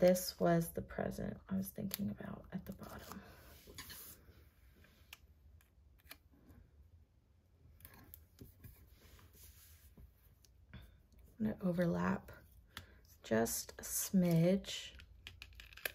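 A sticker peels off a backing sheet.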